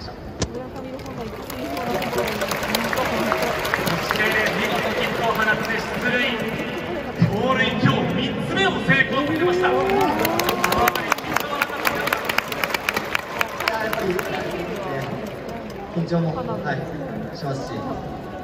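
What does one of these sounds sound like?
A large crowd chants and cheers in a big echoing stadium.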